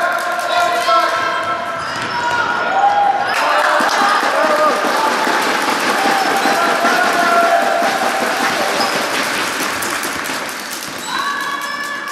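Sneakers squeak sharply on the hardwood floor.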